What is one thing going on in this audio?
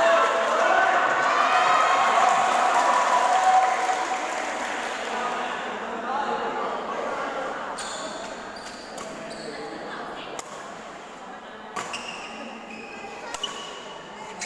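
A badminton racket strikes a shuttlecock with sharp pops.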